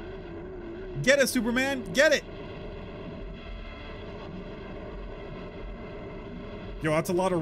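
A young man speaks loudly into a microphone.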